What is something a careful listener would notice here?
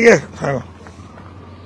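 A man speaks loudly close by in a few short words.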